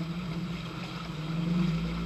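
Muddy water splashes under the wheels.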